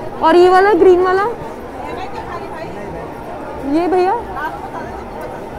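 A man calls out loudly in a sing-song voice close by.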